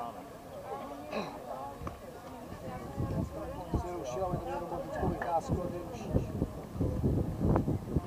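Men's voices call out across an open field.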